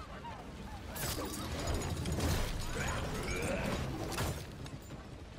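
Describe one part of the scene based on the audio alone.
Heavy blows land in a struggle.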